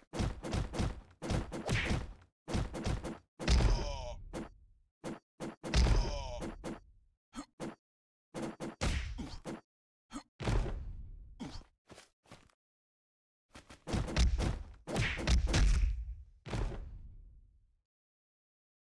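Cartoon punches land with heavy, booming thuds.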